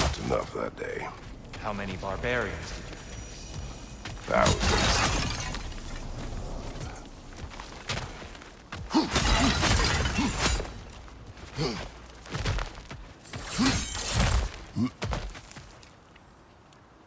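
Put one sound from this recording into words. Heavy footsteps crunch on gravel.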